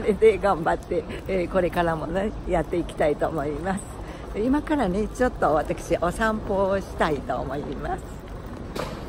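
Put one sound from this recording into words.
An elderly woman speaks cheerfully and close by.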